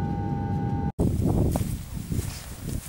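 Shoes crunch on grass and dry ground.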